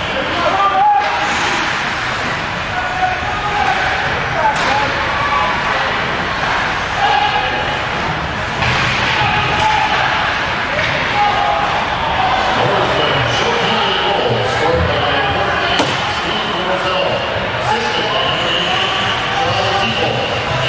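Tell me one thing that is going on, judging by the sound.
A crowd of spectators chatters and cheers in a large echoing rink.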